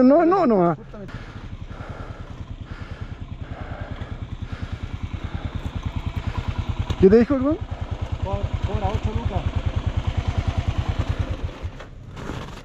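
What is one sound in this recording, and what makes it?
A motorcycle engine idles with a steady low putter.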